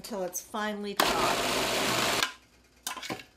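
A food processor whirs in a short burst.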